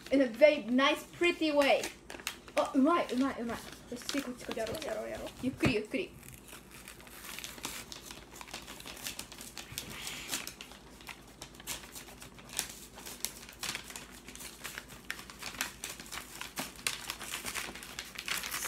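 Wrapping paper rustles and crinkles as it is unfolded.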